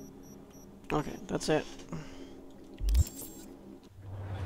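Soft electronic blips and whooshes sound from a menu.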